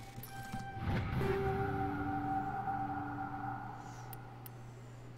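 A bright electronic chime rings out and slowly fades.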